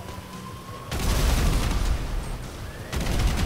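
A car explodes with a loud blast.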